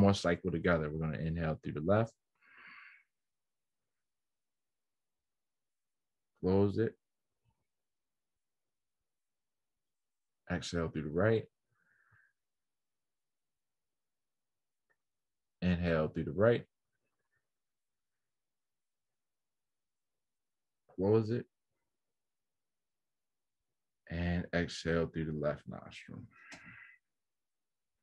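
A man speaks calmly in short bursts through an online call, with long pauses.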